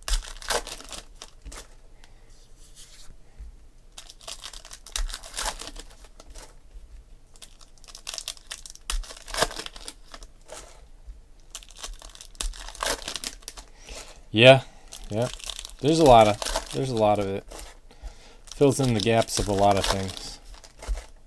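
Foil card wrappers crinkle and tear open.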